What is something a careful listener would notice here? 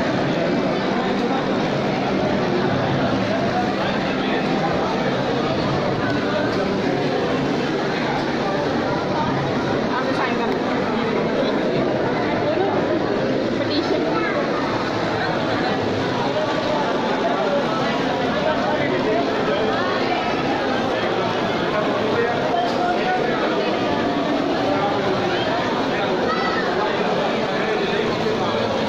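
A large crowd of men and women chatters all around in an echoing hall.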